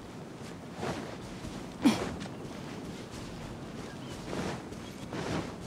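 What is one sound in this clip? Footsteps run and rustle through tall grass.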